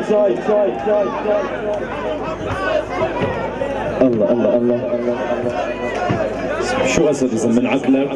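A man sings through a loud sound system.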